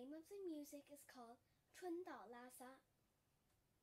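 A young girl speaks clearly and brightly, close by.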